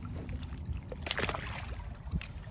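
A fish splashes into shallow water.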